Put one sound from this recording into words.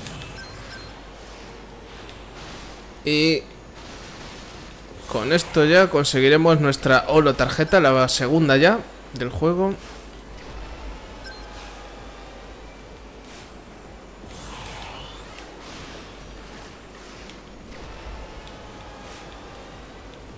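A racing hover vehicle whooshes and hums as it speeds along.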